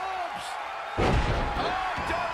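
A heavy body slams onto a ring mat with a loud thud.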